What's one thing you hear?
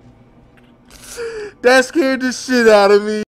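A man laughs and talks with animation into a close microphone.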